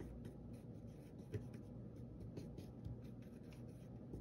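A paintbrush softly dabs and stirs paint in a plastic palette.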